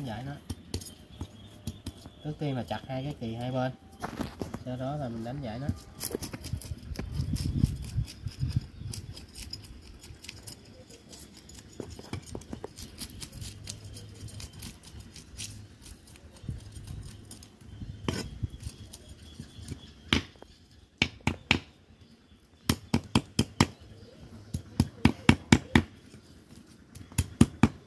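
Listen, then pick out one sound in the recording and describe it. A cleaver chops on a hard surface in sharp, repeated knocks.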